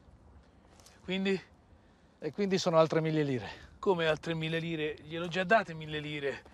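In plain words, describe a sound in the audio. A middle-aged man answers curtly and with irritation.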